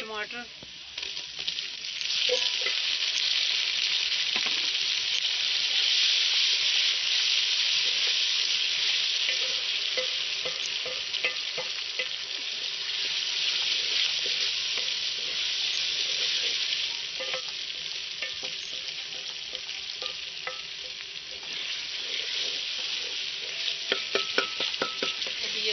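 Food sizzles in a hot pot.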